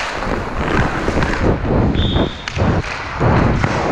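A hockey stick taps and sweeps a puck.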